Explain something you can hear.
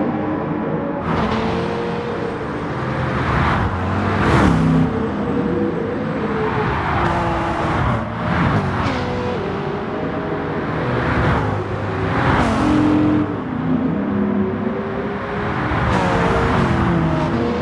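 A car engine whooshes by close up.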